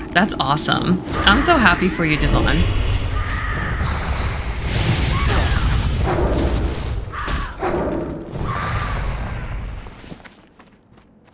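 Game combat effects whoosh and clash.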